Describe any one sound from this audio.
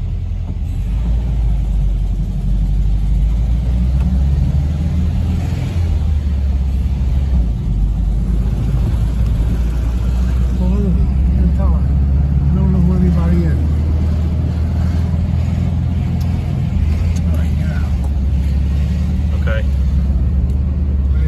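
An old vehicle's engine rumbles steadily while driving.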